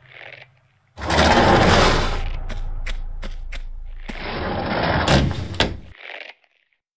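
A heavy door grinds and rumbles as it slides open.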